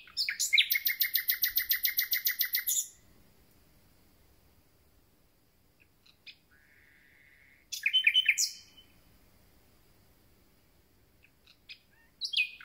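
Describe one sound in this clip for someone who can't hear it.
A small songbird sings loud, rapid trilling phrases close by, with pauses between them.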